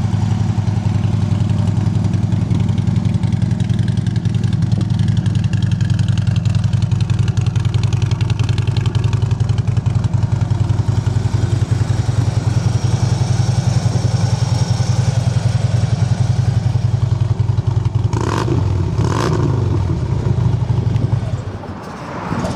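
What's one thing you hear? A motorcycle engine idles with a steady, pulsing low rumble close by.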